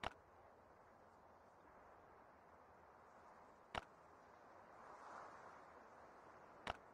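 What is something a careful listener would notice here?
A short interface click sounds.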